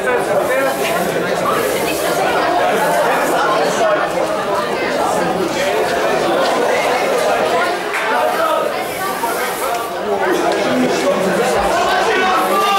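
A crowd of men and women shouts and cheers nearby.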